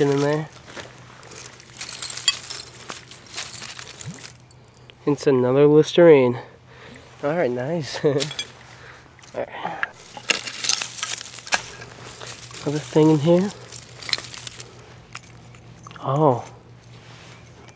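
Dry leaves and twigs rustle and crackle as hands dig through them.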